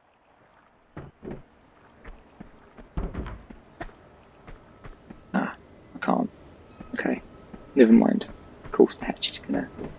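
Footsteps run and clang on a hollow metal floor.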